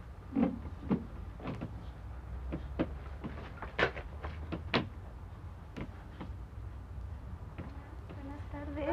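A wicker chair knocks and creaks as it is moved about.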